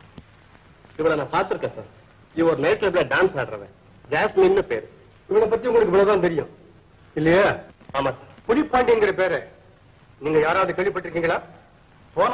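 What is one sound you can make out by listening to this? A man speaks firmly and with animation, close by.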